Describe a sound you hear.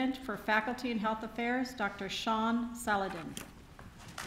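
A woman speaks calmly through a microphone in a large hall.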